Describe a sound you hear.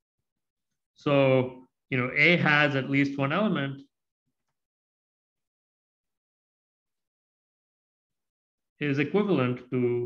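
A man speaks calmly and explains, heard through a microphone, with pauses.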